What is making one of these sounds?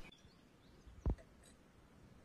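A spoon clinks once against a small bowl.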